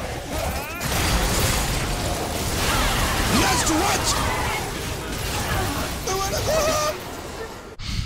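Magic spells crackle and burst in a fast video game battle.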